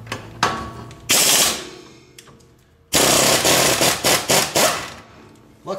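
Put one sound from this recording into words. An air impact wrench whirs loudly in short bursts.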